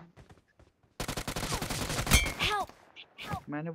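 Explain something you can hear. Rapid bursts of gunfire crack close by.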